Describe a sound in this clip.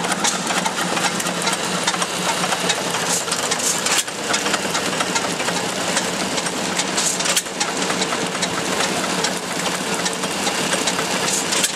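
An old stationary engine runs with a steady rapid chugging and clatter.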